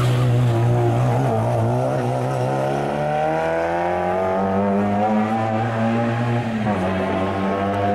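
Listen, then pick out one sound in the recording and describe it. A rally car engine revs hard and rises in pitch as the car speeds away.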